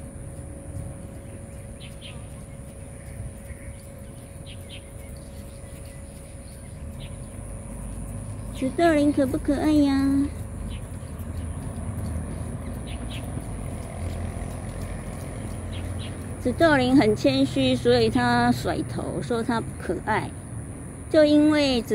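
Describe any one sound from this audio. A small parrot chirps softly in the leaves.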